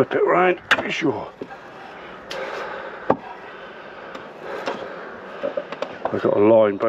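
A man speaks close by, calmly.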